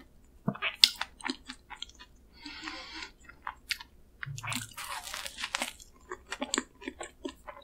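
A young woman bites and chews soft bread with close, wet mouth sounds.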